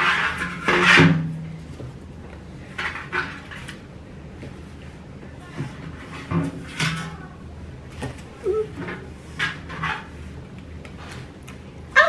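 Leaves rustle and scrape against a metal can.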